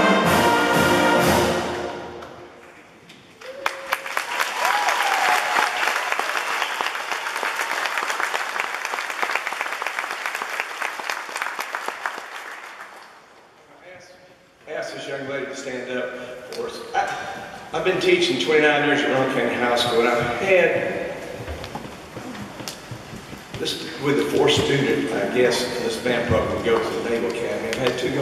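A concert band plays in a large echoing hall.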